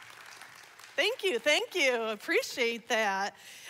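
A woman speaks loudly and with animation through a microphone.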